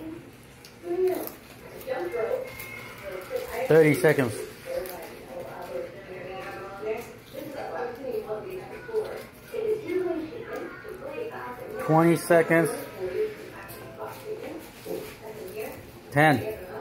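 A young girl crunches loudly on crispy snacks.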